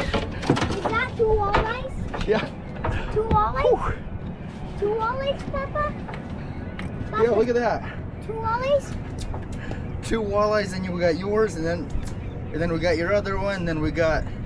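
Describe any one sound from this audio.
A young man talks cheerfully nearby.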